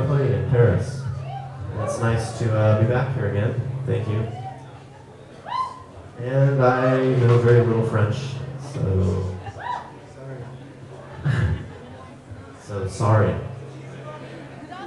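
A man sings loudly into a microphone over a live band.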